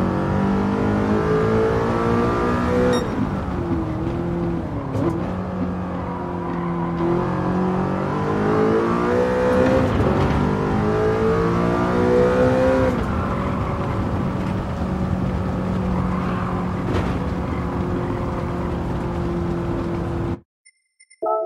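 A racing car engine roars loudly, rising in pitch and dropping with each gear change.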